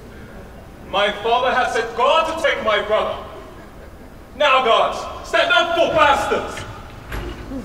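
A man declaims loudly in a large echoing hall.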